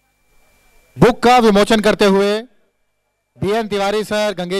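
A man's voice booms loudly through loudspeakers.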